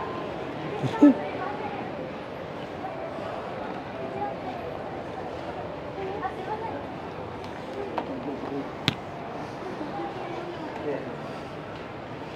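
A crowd of people chatter and murmur in a large echoing hall.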